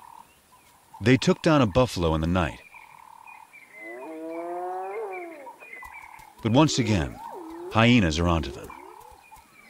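Lions snarl and growl over a kill.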